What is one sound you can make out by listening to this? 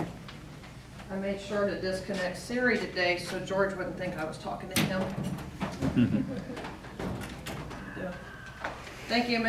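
A middle-aged woman speaks calmly.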